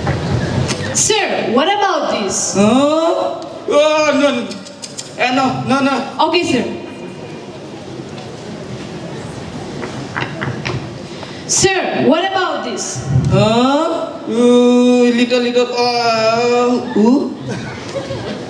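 A young woman speaks with animation through a microphone, heard over loudspeakers in a large room.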